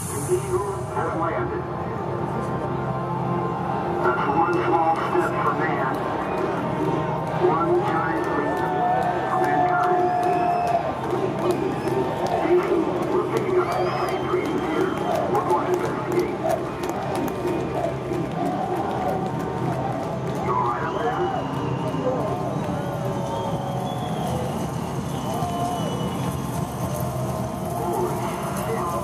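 Intro music plays loudly through big loudspeakers.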